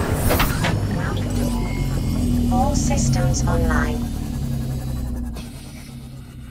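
A small submarine's motor hums steadily underwater.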